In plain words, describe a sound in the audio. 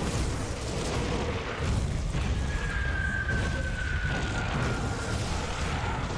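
Weapons clash and thud against enemies.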